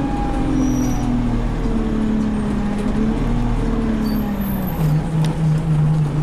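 A bus engine drones steadily, its pitch slowly dropping and then holding low.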